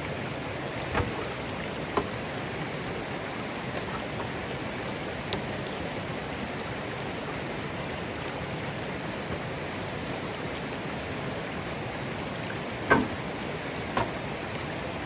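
A bamboo pole knocks against rocks with sharp, hollow thuds.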